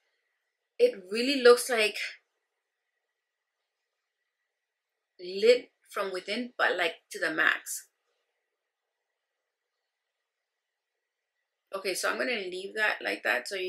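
A woman speaks calmly and close to a microphone, in short bursts with pauses.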